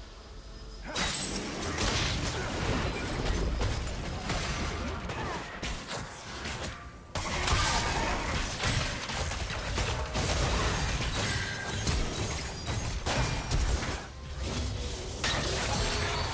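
Fantasy spell blasts and weapon hits crackle and clash in a busy fight.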